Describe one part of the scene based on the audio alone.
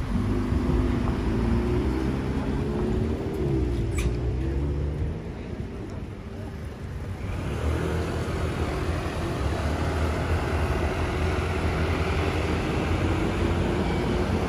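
Engines and tyres of passing traffic rumble along a city street.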